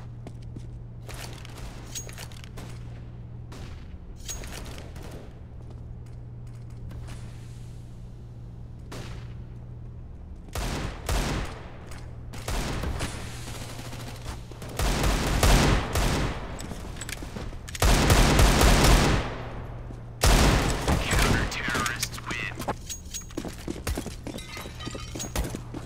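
Footsteps tap on hard ground.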